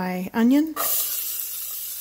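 Chopped onions tumble into a pot.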